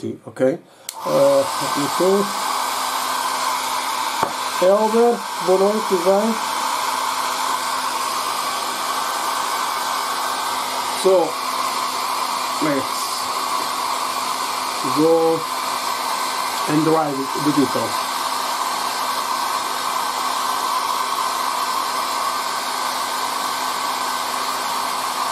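A hair dryer blows with a steady whooshing hum.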